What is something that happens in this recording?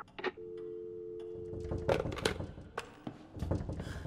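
A telephone handset is set down with a clunk.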